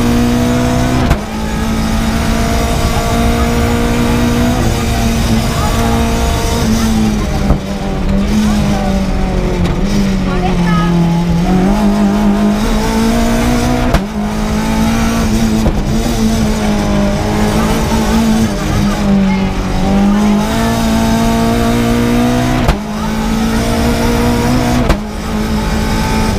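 A race car engine roars loudly from inside the cabin, revving up and down through the gears.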